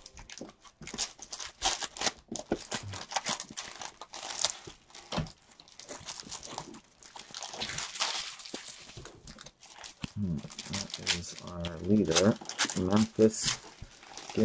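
Plastic card cases click and rustle as they are handled.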